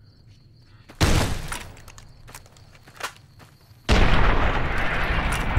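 A gun fires loudly with a booming blast.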